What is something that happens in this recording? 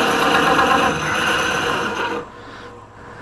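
A gouge scrapes and hisses against spinning wood on a lathe.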